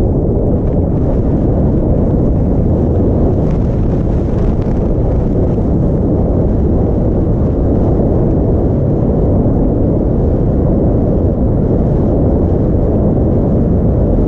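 Wind roars loudly past at speed outdoors.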